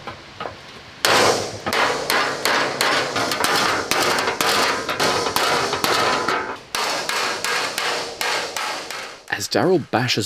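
A hammer pounds sheet metal in rapid, ringing blows.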